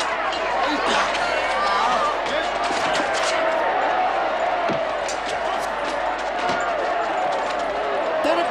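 A crowd of men and women shouts and jeers loudly.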